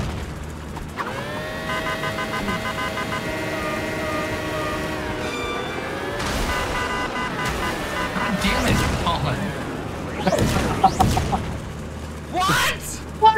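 Small toy car engines whine and rev.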